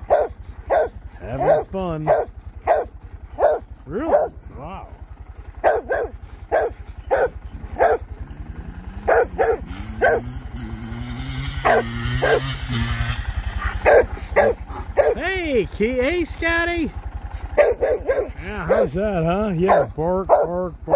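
A motorcycle engine idles with a steady low thumping close by.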